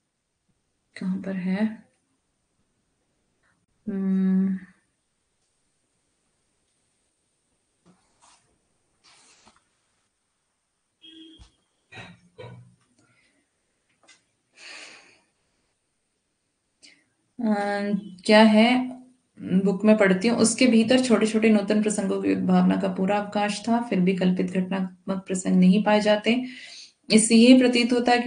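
A young woman speaks calmly and clearly into a nearby microphone, explaining at length with short pauses.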